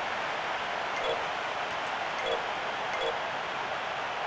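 Short electronic menu beeps sound a few times.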